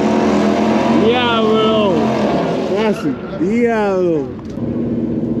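A race car engine revs up and down in sharp bursts.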